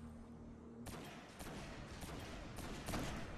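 Rapid gunshots crackle faintly.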